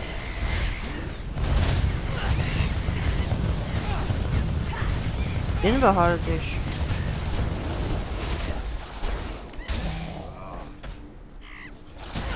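Fiery spell blasts boom and crackle in a video game.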